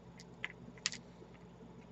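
Small glass beads click softly against each other.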